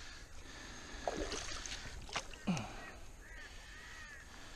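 A fish thrashes and slaps on wet ground.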